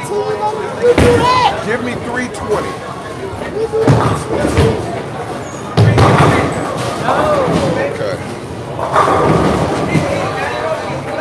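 Bowling balls roll down wooden lanes and crash into pins.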